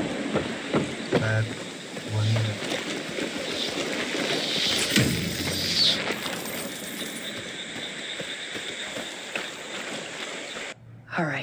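Footsteps squelch through wet mud.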